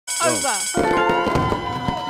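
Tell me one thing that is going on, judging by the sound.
A game plays a short bright jingle.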